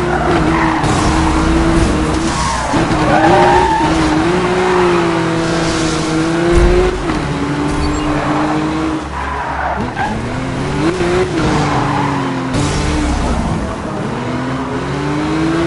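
Tyres screech as a car slides through bends.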